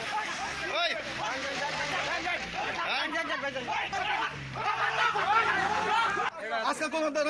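Several men argue loudly and talk over each other close by.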